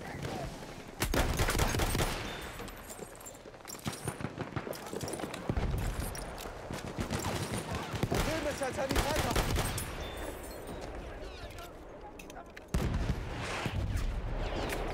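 Gunshots boom loudly.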